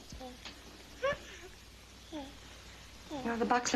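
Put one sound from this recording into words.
A baby babbles and coos.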